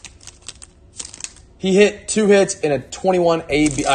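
Trading cards slide and rub against each other.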